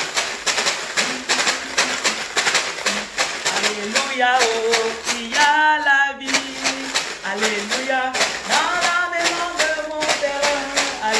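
A woman sings loudly close by.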